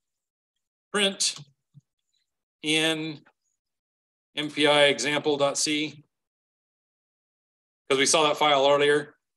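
A man speaks calmly into a microphone in short phrases.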